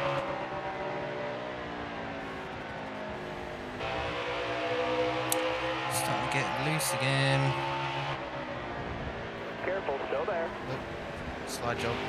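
Race car engines roar loudly at high speed throughout.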